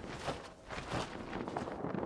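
Large wings flap heavily.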